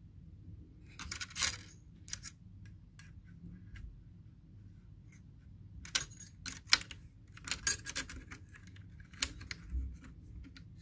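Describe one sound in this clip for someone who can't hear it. Fingers click and scrape against a small metal bracket.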